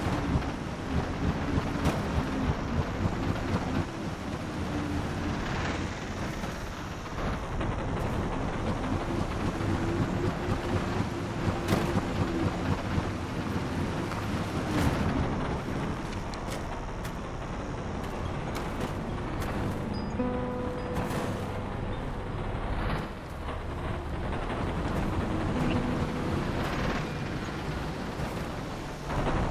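A hoverbike engine hums steadily as it glides over sand.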